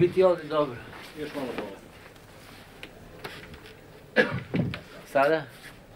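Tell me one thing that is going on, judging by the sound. A second man answers briefly nearby.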